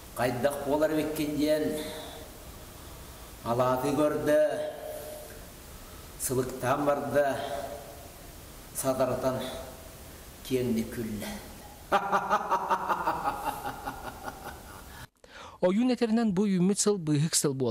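An elderly man sings a slow, wavering chant in short phrases, close by.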